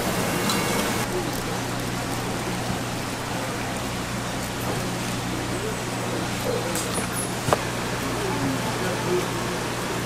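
A knife chops and scrapes on a cutting board.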